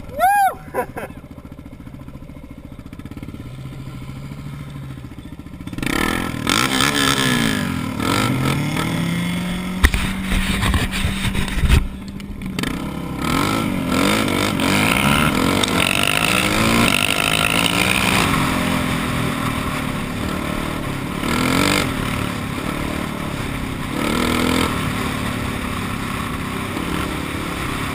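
A dirt bike engine revs and drones up close.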